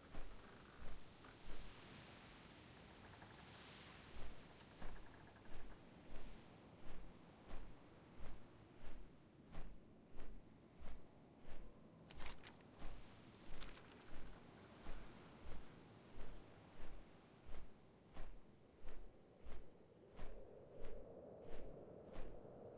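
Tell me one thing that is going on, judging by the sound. Large wings flap in steady, heavy beats.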